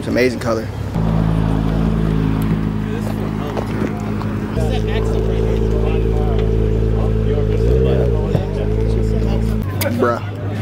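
A sports car engine rumbles deeply as the car pulls away.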